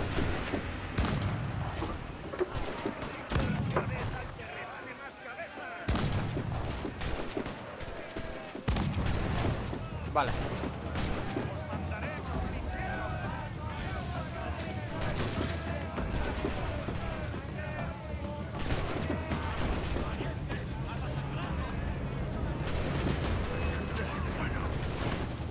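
Cannons boom in loud, heavy blasts.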